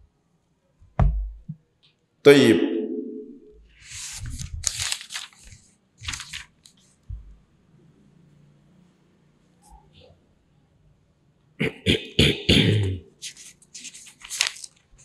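A man reads aloud slowly and calmly into a close microphone, with pauses.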